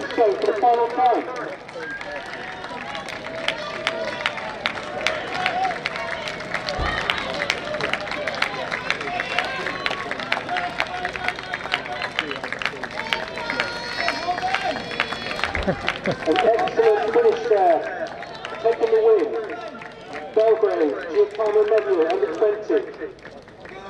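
Spectators shout and cheer loudly outdoors.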